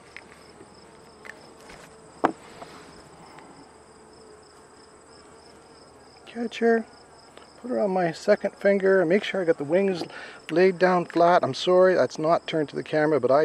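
Bees buzz softly.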